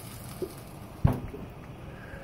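A metal grill lid clanks shut.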